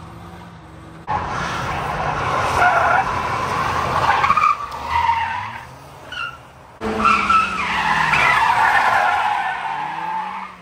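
A car engine revs hard.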